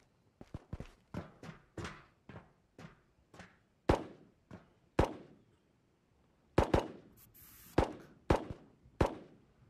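Heavier footsteps clang on a metal ramp.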